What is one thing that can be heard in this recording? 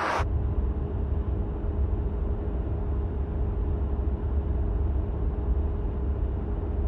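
A car engine hums steadily with low road rumble from inside the car.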